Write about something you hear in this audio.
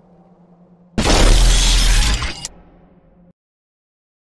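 A creature lets out a sudden, loud screech.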